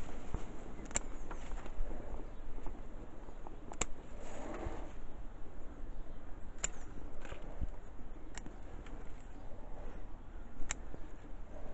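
Pruning shears snip crisply through stems.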